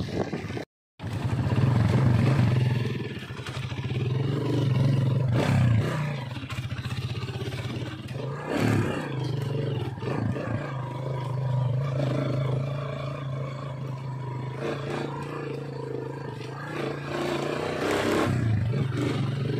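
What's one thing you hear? Tyres crunch over a rough dirt road.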